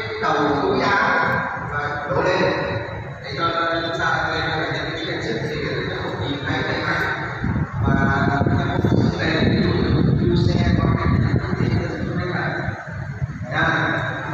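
A small group of men sings together.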